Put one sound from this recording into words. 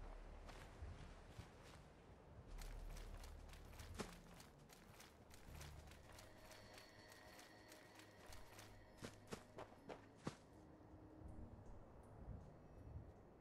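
Footsteps rustle through dry grass at a steady walking pace.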